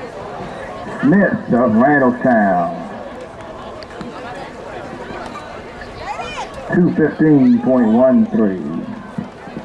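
A woman shouts encouragement loudly nearby.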